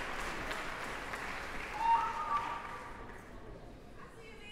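An audience applauds in a large echoing hall, then the applause fades.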